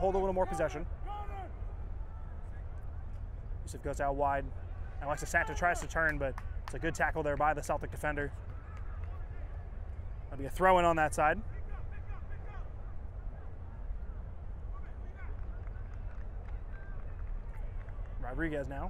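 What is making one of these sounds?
Young men shout and call out to each other on an open field.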